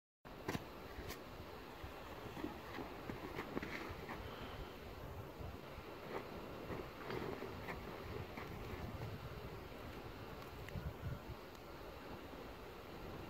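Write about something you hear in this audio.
Snow crunches and creaks underfoot as a person shifts on skis.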